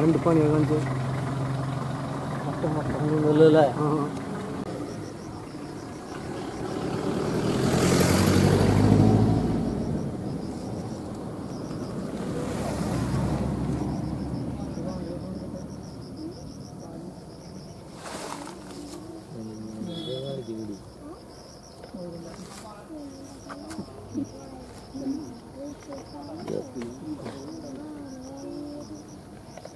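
Elephants tear and munch leafy plants close by.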